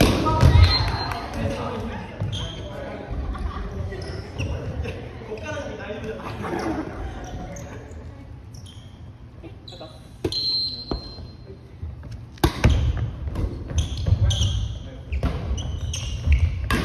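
Young adults shout and cheer in a large echoing hall.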